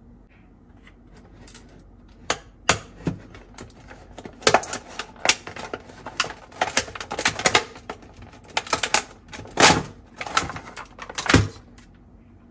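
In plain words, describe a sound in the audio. Plastic toys rattle and clack in a plastic basket as hands handle them.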